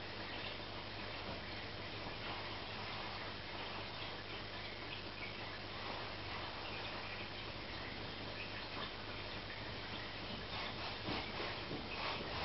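An aquarium pump hums low and steadily.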